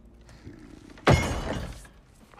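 An object thuds down on a wooden table.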